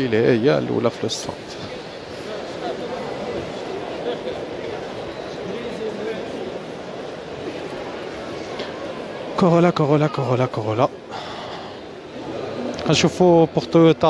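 A man speaks loudly and animatedly close by.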